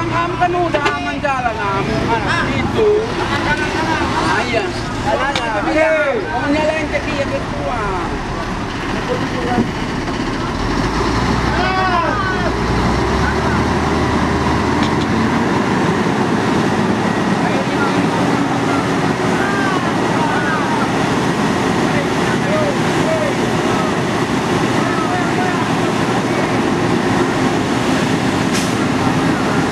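A heavy truck engine roars and strains as the truck crawls through mud.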